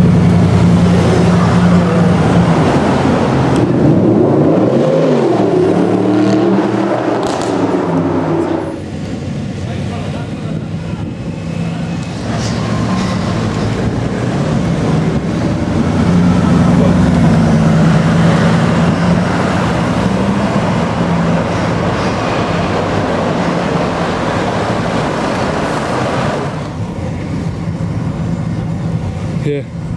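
Traffic passes by on a city street.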